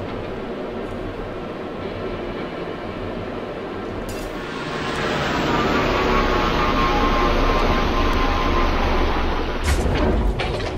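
A spaceship engine hums steadily, swelling louder as the craft descends.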